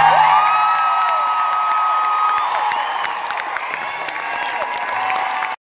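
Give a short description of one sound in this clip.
A crowd cheers and whistles loudly.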